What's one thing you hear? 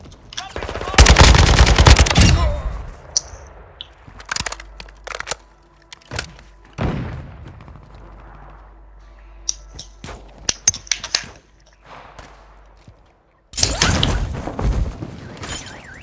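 Rifle shots fire in loud, rapid bursts.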